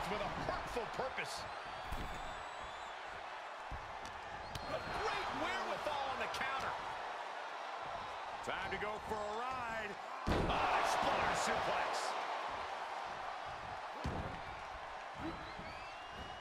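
A large arena crowd cheers and roars.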